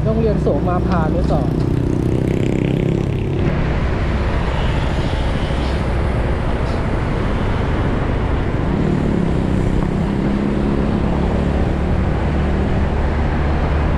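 Wind rushes past loudly outdoors.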